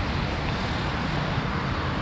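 City traffic hums in the distance, outdoors.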